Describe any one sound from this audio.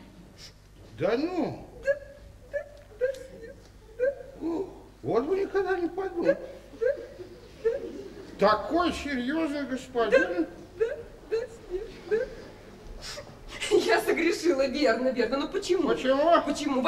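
A woman speaks with emotion close by, her voice high and wavering.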